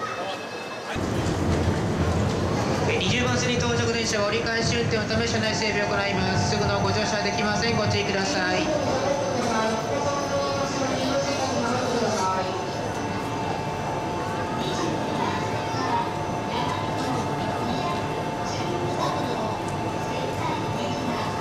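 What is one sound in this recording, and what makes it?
A crowd of men and women chatter excitedly close by.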